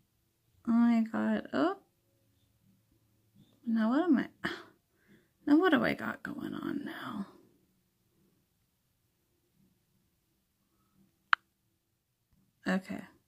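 A young woman speaks sadly and haltingly, close to a microphone.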